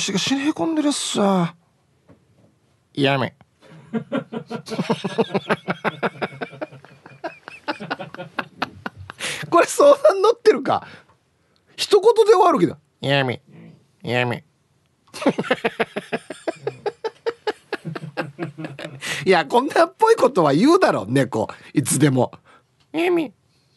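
A middle-aged man talks with animation into a microphone.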